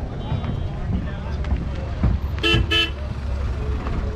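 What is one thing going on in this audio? A car drives slowly along a dirt track.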